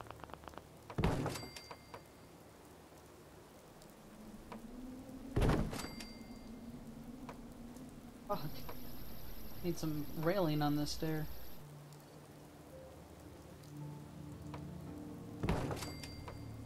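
Wooden stairs drop into place with a sharp, heavy knock.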